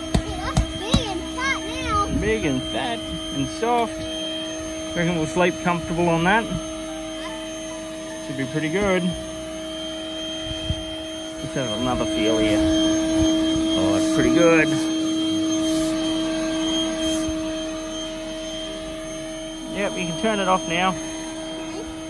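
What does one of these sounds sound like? An electric air pump hums steadily.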